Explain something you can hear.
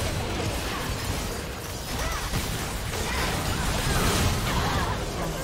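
Fantasy battle sounds of spells blasting and weapons clashing crackle rapidly.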